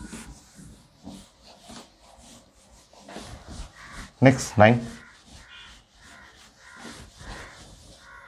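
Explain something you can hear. A cloth eraser rubs across a whiteboard.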